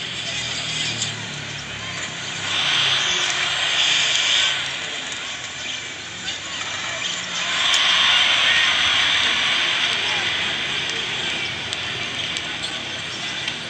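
A crowd cheers and roars, swelling loudly at times.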